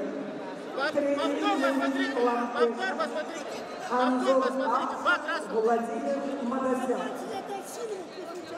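A man shouts loudly near the mat.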